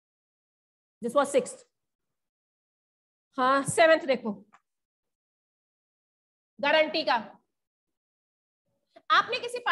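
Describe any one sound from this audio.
A woman speaks in short phrases with pauses between them.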